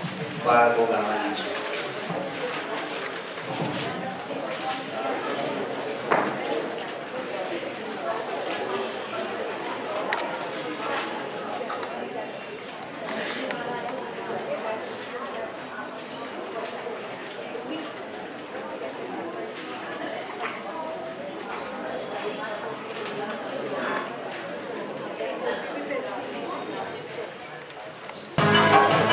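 Young children chatter and murmur in an echoing hall.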